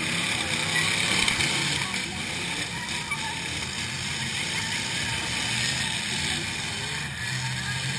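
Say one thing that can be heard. Truck engines rumble and roar.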